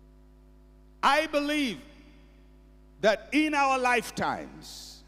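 A middle-aged man speaks with animation through a microphone, heard over loudspeakers.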